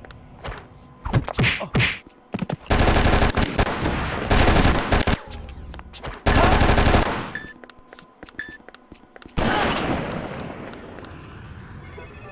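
Loud explosions boom in quick bursts.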